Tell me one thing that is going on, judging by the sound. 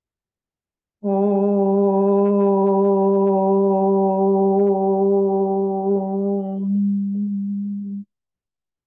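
An elderly woman sings a long, steady note.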